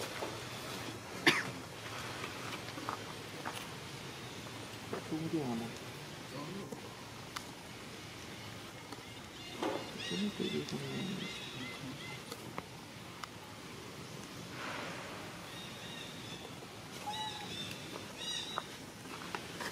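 A young monkey scrambles across a stone.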